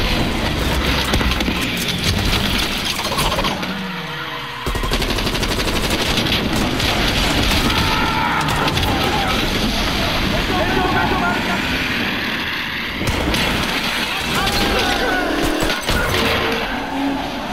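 A vehicle engine roars steadily while driving fast.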